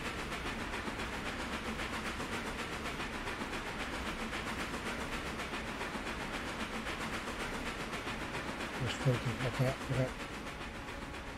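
A steam locomotive chuffs steadily as it pulls a train.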